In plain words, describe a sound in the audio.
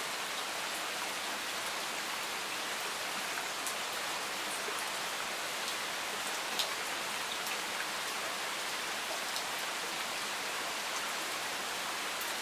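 Steady rain patters on leaves and gravel outdoors.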